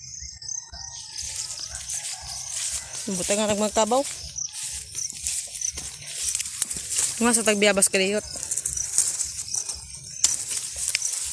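Leaves and twigs rustle close by.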